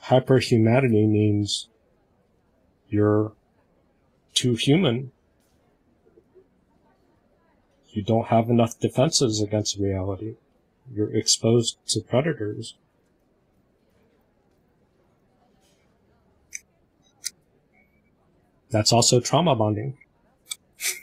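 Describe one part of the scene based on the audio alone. A man speaks through an online call in short bursts with pauses.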